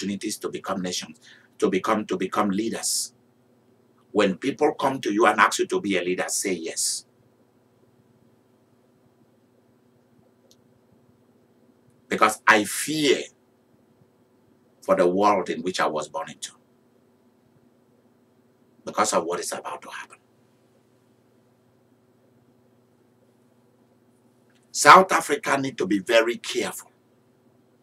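A man speaks with animation, close to a microphone, in bursts with long pauses.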